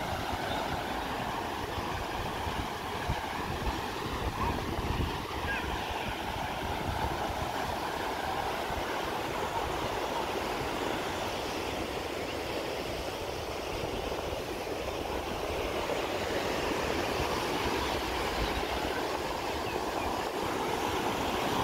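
Waves break and wash onto the shore steadily.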